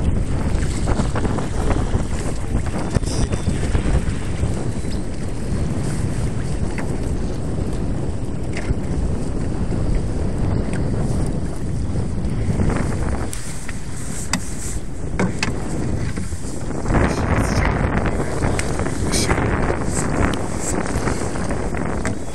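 Wind buffets loudly outdoors on open water.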